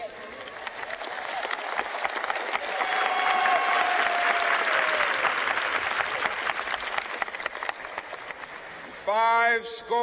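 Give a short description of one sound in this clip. A large crowd cheers and claps outdoors.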